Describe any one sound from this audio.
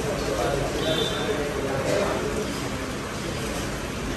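A spoon scrapes against a plate.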